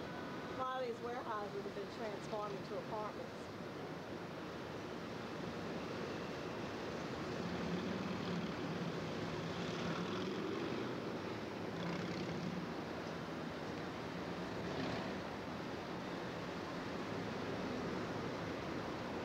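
City traffic hums steadily far below, heard outdoors from high up.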